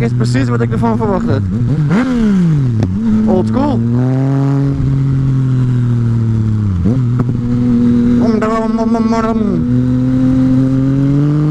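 A motorcycle engine hums close by, revving up and dropping back as gears change.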